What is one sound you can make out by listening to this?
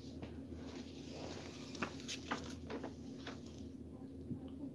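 Paper rustles and crinkles in a man's hands.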